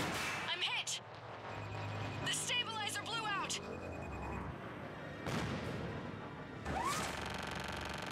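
A gunship fires rapid bursts of gunfire.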